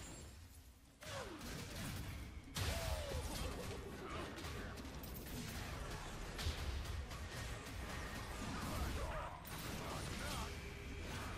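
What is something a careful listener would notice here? Video game combat effects clash and burst.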